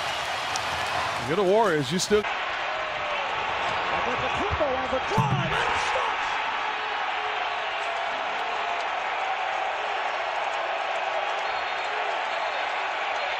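A large crowd cheers and roars loudly in an echoing arena.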